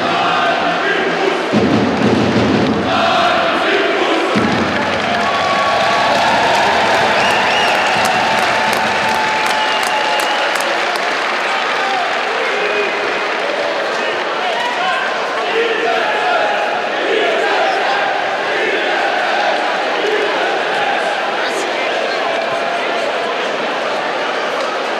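A large crowd cheers, chants and claps loudly in a big echoing arena.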